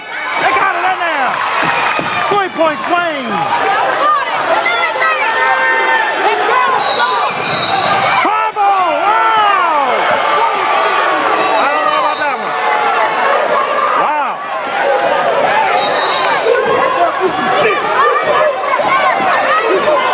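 Sneakers squeak sharply on a wooden gym floor again and again.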